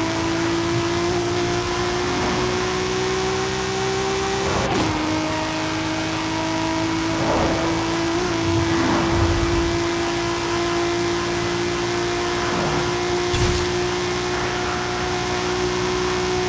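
Tyres rush over a road at speed.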